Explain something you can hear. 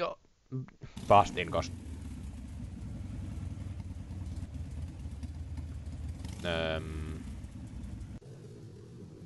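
A small scooter motor buzzes steadily.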